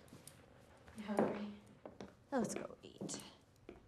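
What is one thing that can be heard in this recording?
A young woman speaks nearby with feeling.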